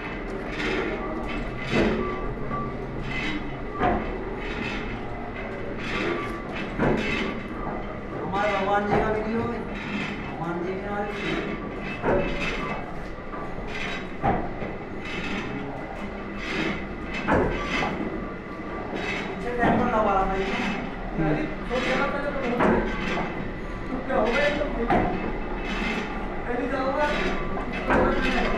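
A lathe runs with a steady mechanical hum.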